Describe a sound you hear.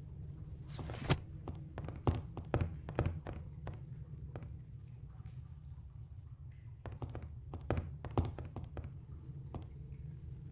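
Footsteps knock on wooden floorboards.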